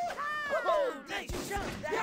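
A gun fires a sharp shot.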